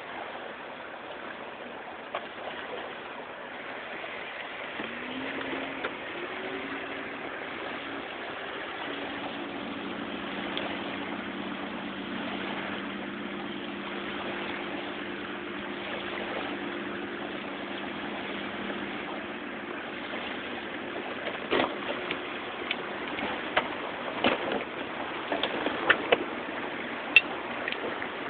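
Small lake waves lap gently on a sandy shore.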